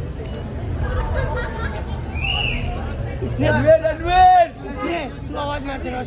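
A man greets others with animation.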